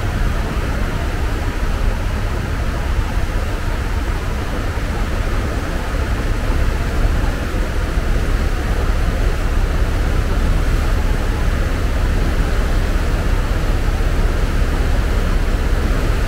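Wind rushes steadily across the open water.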